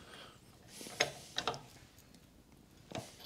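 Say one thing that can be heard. A wrench clicks as wheel nuts are tightened.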